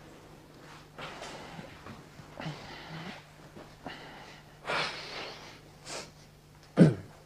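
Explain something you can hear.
A young man speaks calmly nearby.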